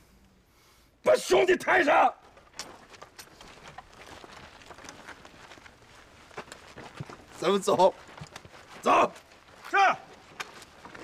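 A middle-aged man shouts gruffly.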